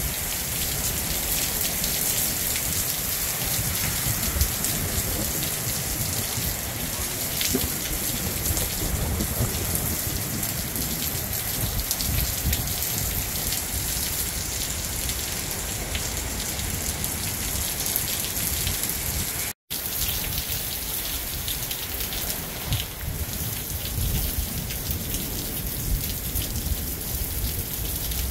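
Strong wind gusts and rumbles.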